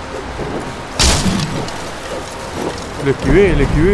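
Wooden beams crash and splinter apart.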